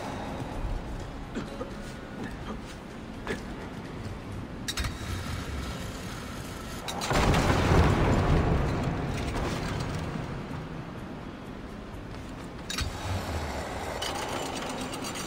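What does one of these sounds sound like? A pulley rattles and whirs along a taut rope.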